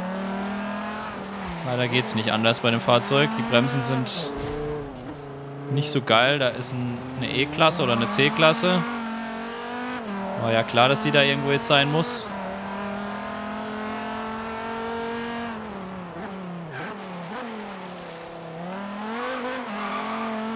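A car engine roars and revs up and down as the car speeds along.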